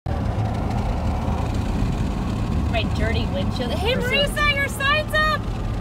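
Tyres rumble steadily on asphalt.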